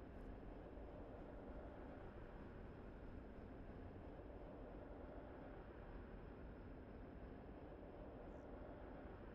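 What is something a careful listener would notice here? A spaceship engine hums with a low, steady drone.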